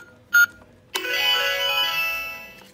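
A toy plays a short electronic jingle.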